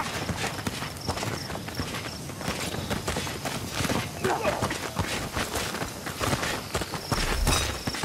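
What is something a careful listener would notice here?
Footsteps run quickly over rough ground and through dry grass.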